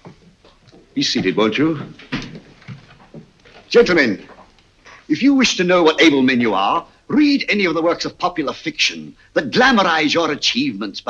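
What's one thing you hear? A man speaks loudly and firmly.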